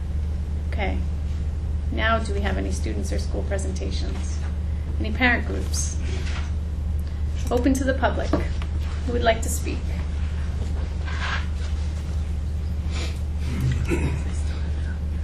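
A woman speaks with animation into a microphone in a room.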